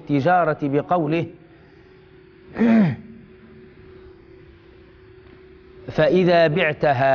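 A man recites in a melodic chanting voice into a microphone, with pauses between phrases.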